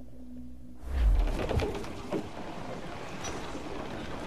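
Waves wash against the hull of a sailing ship.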